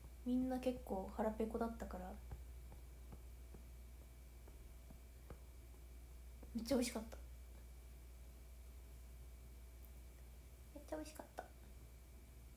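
A young woman speaks softly close to a microphone, in short bursts.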